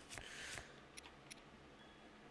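Short soft menu blips click now and then.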